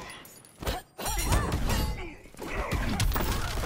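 A burst of energy blasts with a loud whoosh.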